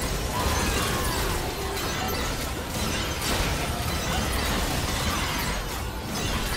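Magic spells crackle and blast in a loud fantasy battle.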